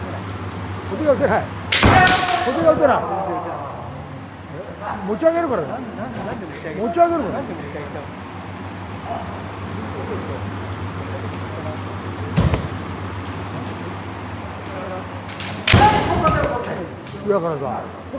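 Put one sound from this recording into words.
A man shouts loudly through a face guard.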